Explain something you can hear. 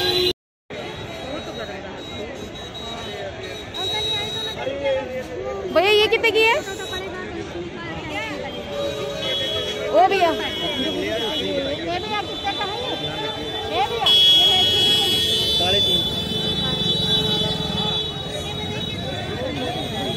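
A crowd murmurs and chatters in the background outdoors.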